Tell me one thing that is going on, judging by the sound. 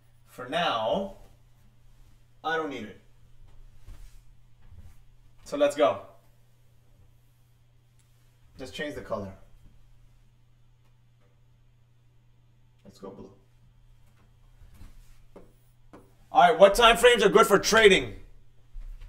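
A man speaks calmly in short phrases, close by, with pauses between them.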